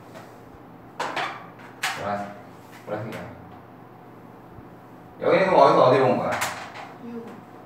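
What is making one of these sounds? A young man speaks calmly, explaining, close by.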